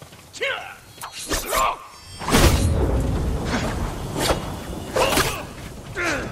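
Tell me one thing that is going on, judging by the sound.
Swords clash and ring sharply again and again.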